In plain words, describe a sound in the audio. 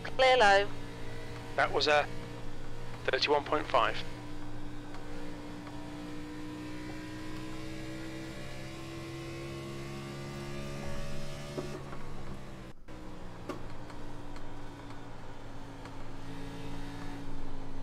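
A race car engine drones steadily and slowly rises in pitch.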